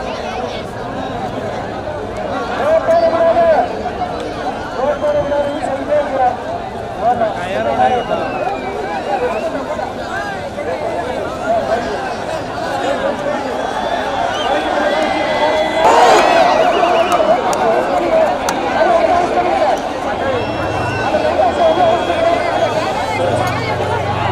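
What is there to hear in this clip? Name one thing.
A large outdoor crowd shouts and cheers loudly throughout.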